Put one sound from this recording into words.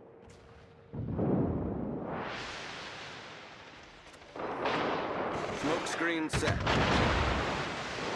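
Shells explode in the water with deep, rumbling booms.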